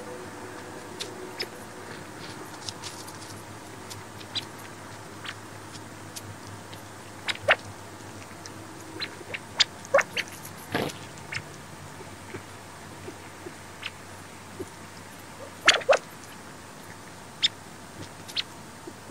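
Small birds peck at snow on a tree stump with soft, quick taps.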